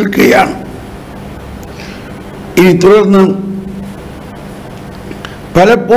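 An older man speaks calmly and close to a microphone, with pauses.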